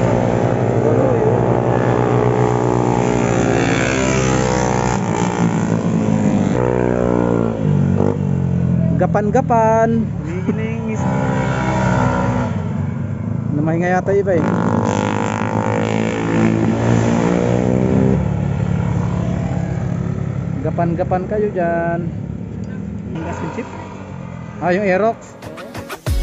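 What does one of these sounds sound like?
Motorcycle engines roar and rev loudly as bikes speed past close by.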